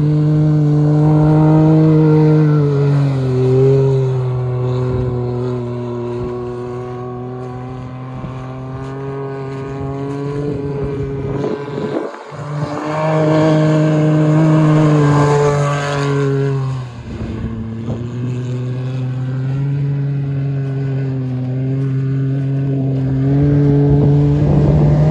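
A turbocharged three-cylinder sport side-by-side revs as it slides across ice.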